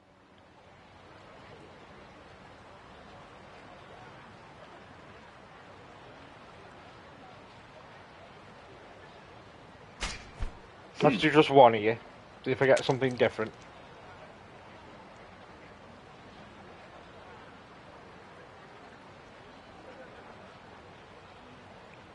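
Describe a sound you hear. Water laps gently and steadily.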